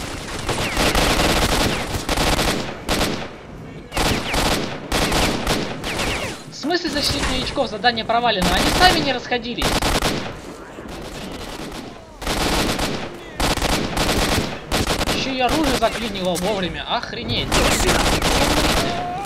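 A rifle fires in rapid bursts, cracking loudly.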